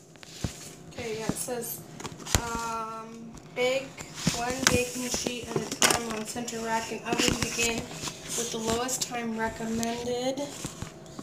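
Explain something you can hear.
A young child talks and hums in a high voice close by.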